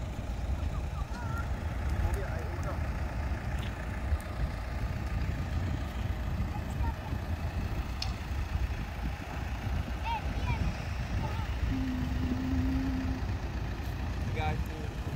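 Children talk and call out at a distance.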